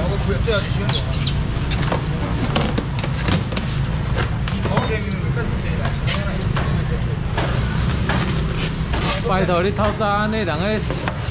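Styrofoam lids squeak and knock against boxes.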